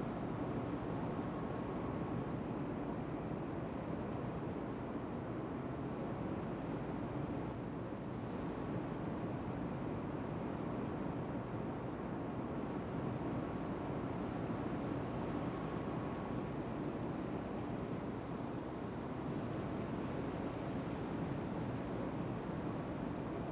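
A warship's hull cuts through water with a steady rushing wash.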